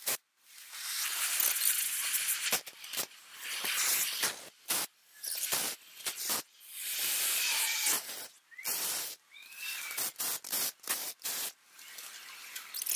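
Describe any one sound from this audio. A cutting torch hisses and roars in bursts.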